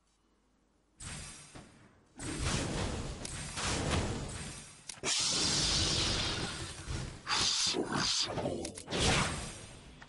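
Blows and impacts thud during a fight.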